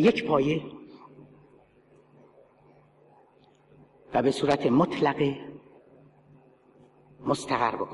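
A middle-aged man speaks forcefully into a microphone in a large echoing hall, pausing between phrases.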